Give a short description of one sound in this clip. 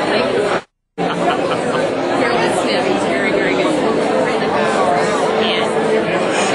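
A middle-aged woman talks cheerfully close by.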